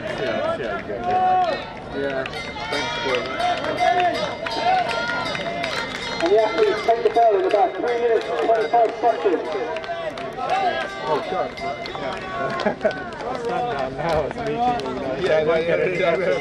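A crowd of spectators cheers and shouts encouragement outdoors.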